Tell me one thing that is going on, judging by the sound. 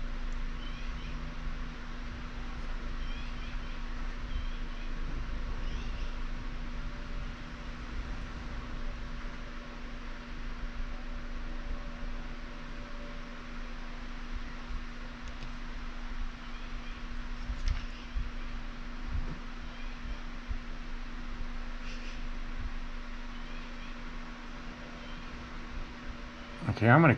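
A tool softly scrapes and presses into clay.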